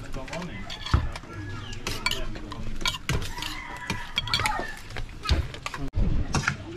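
Spoons and forks clink against plates.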